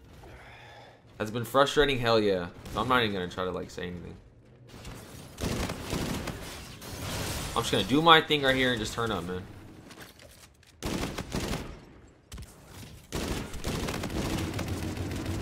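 Gunfire from a video game rattles in short bursts.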